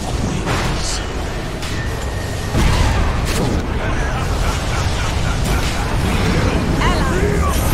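Magic spells crackle and boom in a fierce fight.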